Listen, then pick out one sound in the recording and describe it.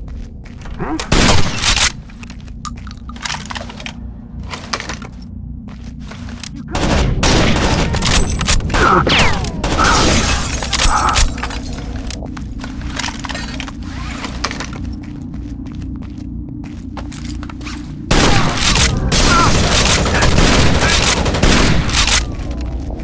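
Gunshots crack in short bursts, echoing indoors.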